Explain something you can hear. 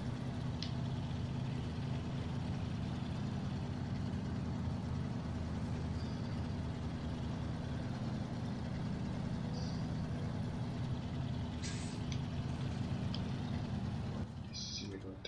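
A heavy truck engine rumbles steadily at low speed.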